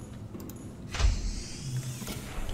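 A metal hatch hisses open with a low whoosh.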